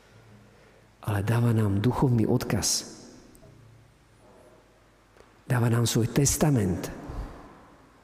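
A man speaks calmly and clearly into a microphone in an echoing hall.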